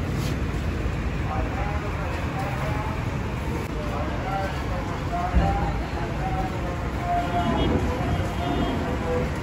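A fire roars steadily in a furnace.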